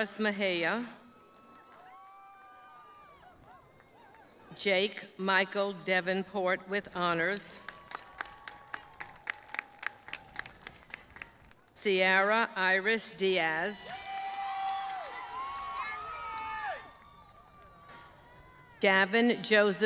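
A crowd in the stands cheers and claps.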